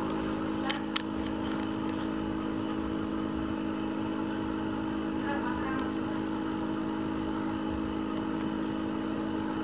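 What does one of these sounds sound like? Air bubbles from an air stone burble in an aquarium tank.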